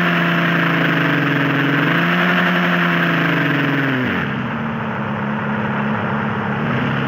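A car engine hums steadily, then drops in pitch and idles lower.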